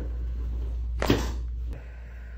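A joint cracks sharply with a loud pop.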